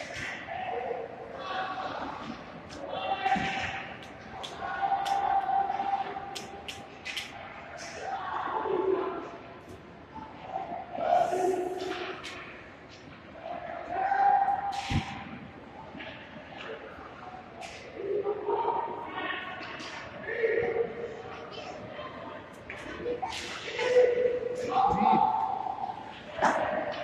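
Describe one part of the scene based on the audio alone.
Skates scrape and hiss across the ice in a large echoing hall.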